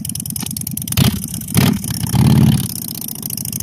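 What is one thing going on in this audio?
A motorcycle engine revs sharply in short bursts.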